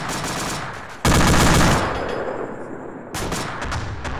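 A heavy cannon fires with a loud boom that rumbles away.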